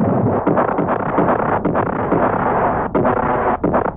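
Heavy guns fire with deep booming blasts.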